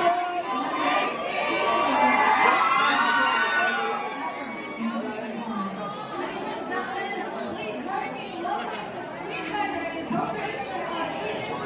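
A crowd of men and women chatter loudly all around in a busy, echoing room.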